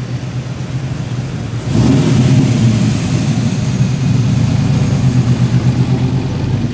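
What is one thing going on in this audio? A pickup truck's engine rumbles loudly as it drives past close by.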